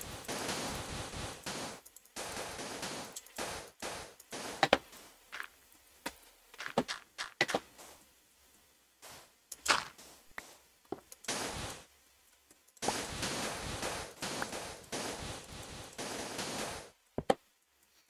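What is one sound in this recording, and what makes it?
Sand crunches in short bursts as blocks are dug away.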